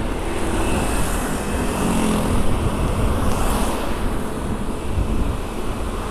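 Motor scooters ride past nearby.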